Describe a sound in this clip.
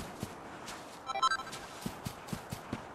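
A game chime sparkles when an item is found.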